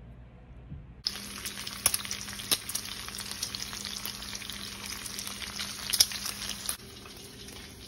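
Bacon sizzles and crackles in a hot pan.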